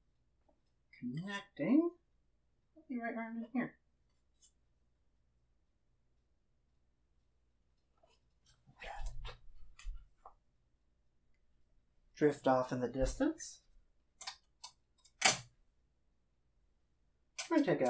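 A man talks calmly close by, pausing now and then.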